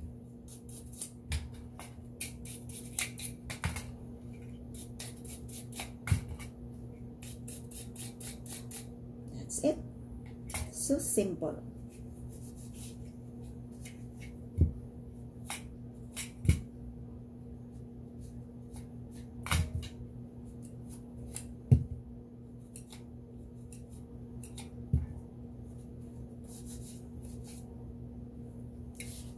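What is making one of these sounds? Hard plastic parts click and knock against each other and a padded surface.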